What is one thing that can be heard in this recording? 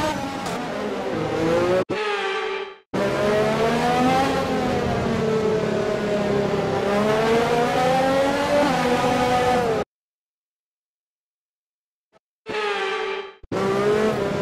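A racing car engine whines at high revs, rising and falling as it shifts gears.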